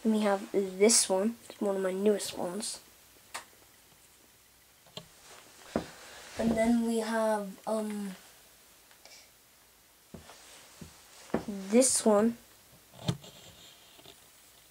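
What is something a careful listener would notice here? A small plastic toy taps and knocks against a play mat.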